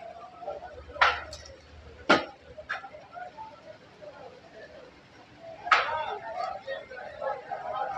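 Metal skewers clink and clatter against each other.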